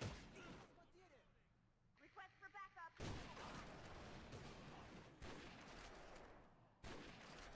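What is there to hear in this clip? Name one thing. A rifle fires with sharp, echoing cracks.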